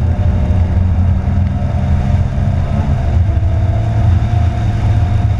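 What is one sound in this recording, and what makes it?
A car engine roars steadily at speed from inside the car.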